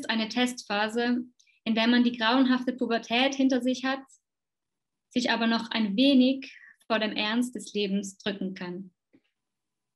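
A young woman speaks calmly and close to a microphone.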